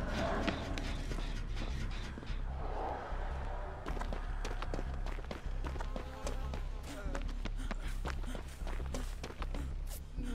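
Footsteps run quickly over hard ground and through grass.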